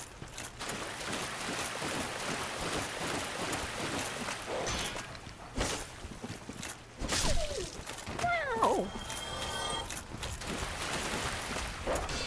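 Footsteps in armour crunch over leaves and grass.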